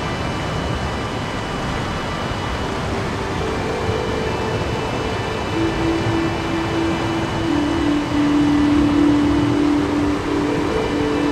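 Water rushes and splashes steadily over a weir outdoors.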